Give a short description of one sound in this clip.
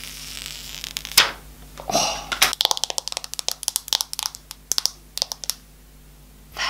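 Fingernails tap and click on plastic and glass close to the microphone.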